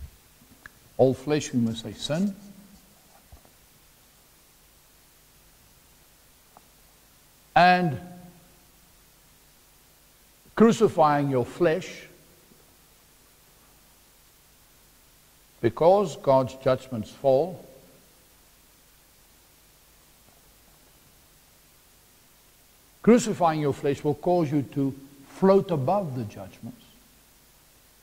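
A man speaks in short bursts with pauses, in a room with some echo.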